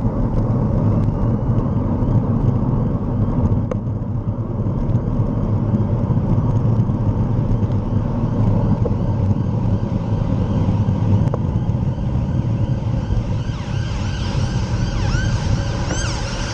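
Tyres roll steadily over a road.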